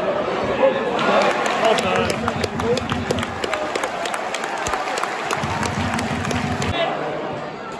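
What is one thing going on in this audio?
Fans nearby clap their hands.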